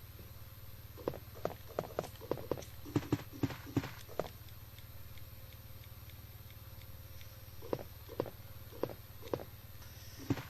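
Footsteps knock on a wooden floor.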